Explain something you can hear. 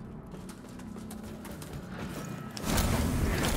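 Footsteps scuff on a stone floor.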